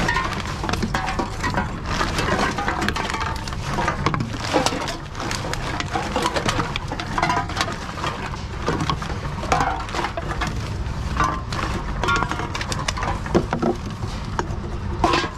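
Empty cans and plastic bottles clatter and rattle against each other.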